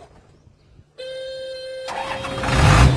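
A truck's starter motor whines briefly.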